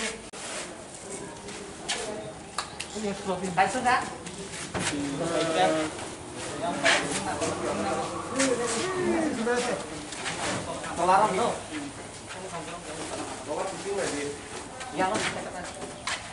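Cardboard boxes thud and scrape on a truck bed.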